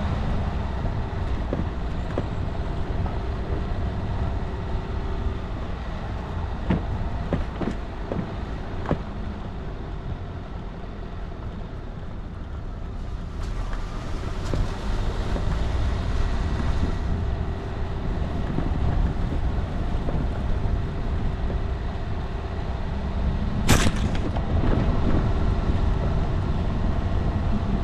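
Tyres crunch and rattle over a rough gravel track, with occasional knocks.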